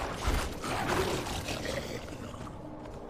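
Magic blasts crackle and burst during a fight.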